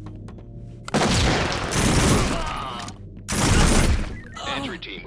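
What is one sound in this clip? Gunshots ring out in loud, sharp bursts.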